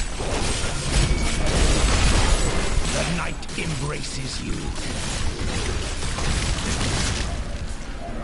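Explosions boom and splatter during a game fight.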